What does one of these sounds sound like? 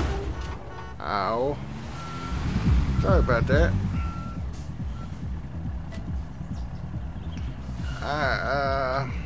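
A diesel dump truck engine rumbles.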